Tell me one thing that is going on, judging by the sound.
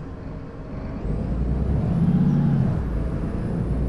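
A car passes by close.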